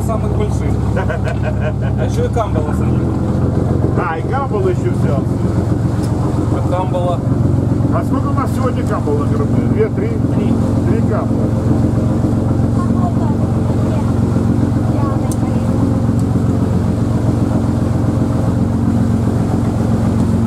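A boat engine rumbles steadily throughout.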